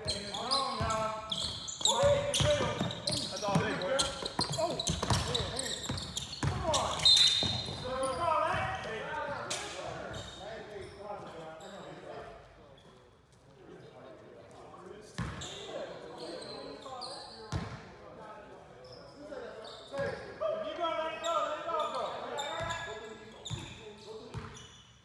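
Adult men shout to each other across an echoing gym.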